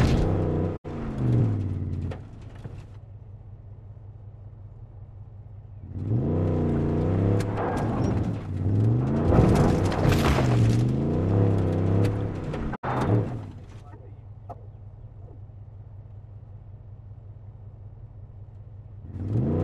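A truck engine revs up and down in bursts, idling low in between.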